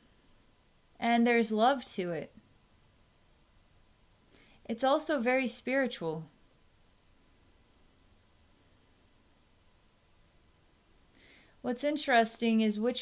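A woman speaks calmly and slowly into a close microphone, with long pauses.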